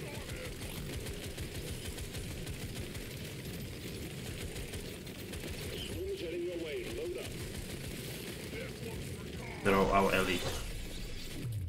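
Video game gunfire and creature noises crackle steadily.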